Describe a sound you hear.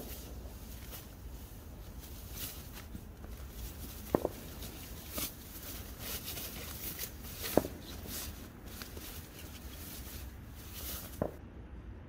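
Foil crinkles and rustles as it is unfolded and spread out.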